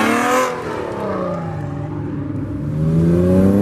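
A car engine revs up as the car accelerates hard past.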